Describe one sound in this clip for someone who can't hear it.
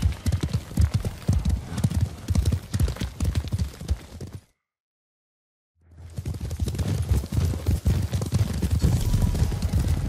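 Horses' hooves thud rapidly on a dirt path.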